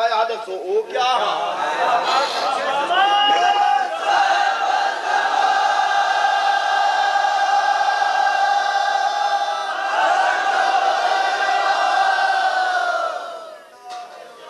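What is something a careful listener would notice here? A man chants in a long, drawn-out, wavering tone.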